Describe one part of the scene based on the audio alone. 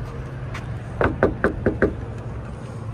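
A hand knocks sharply on a hollow plastic door several times.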